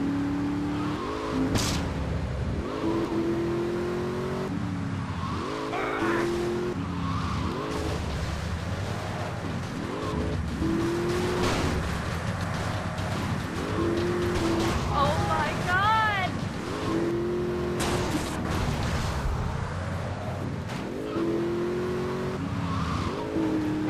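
A car engine revs hard and shifts gears over and over.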